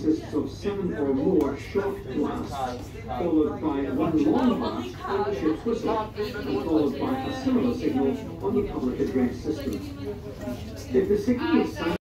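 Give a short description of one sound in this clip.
Several voices chatter in the background.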